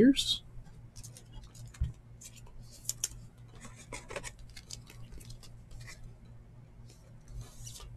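A plastic card sleeve crinkles softly as a card slides into it.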